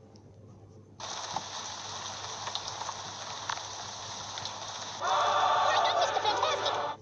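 Rain pours down steadily.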